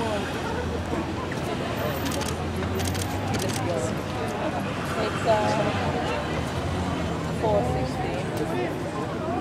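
Traffic hums steadily in the background.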